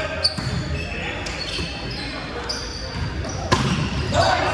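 A volleyball is struck with a sharp slap in a large echoing gym.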